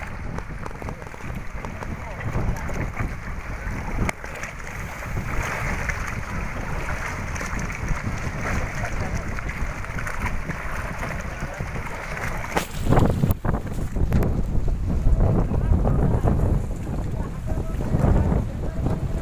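Wind blows hard across open water, rumbling.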